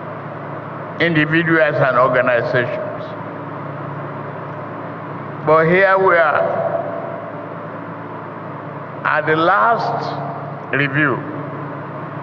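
An elderly man speaks slowly and deliberately through a microphone and loudspeakers, with pauses between phrases.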